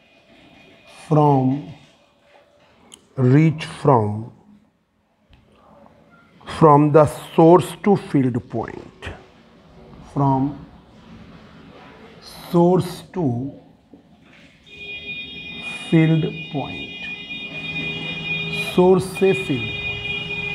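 A man speaks calmly in short phrases, as if explaining, close by.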